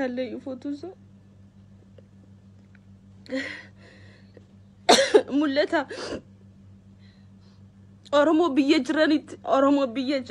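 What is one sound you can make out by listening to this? A woman speaks animatedly close to a phone microphone, with pauses.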